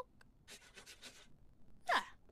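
Wood is sanded and scraped in short strokes.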